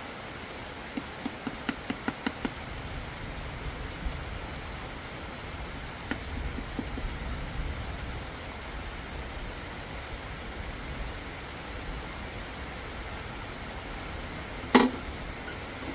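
Bamboo tubes knock against each other.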